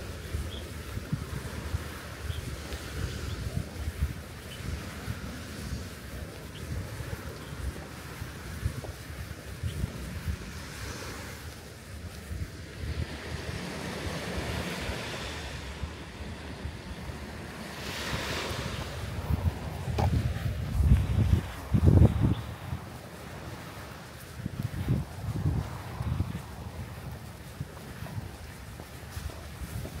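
Footsteps tread on a paved path.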